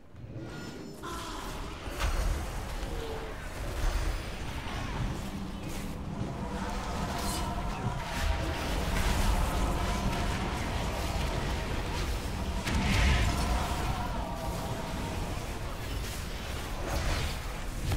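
Magic spells crackle and boom during a fight.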